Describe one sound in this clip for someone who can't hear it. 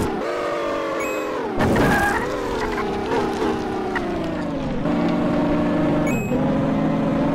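A short bright chime rings as a coin is picked up.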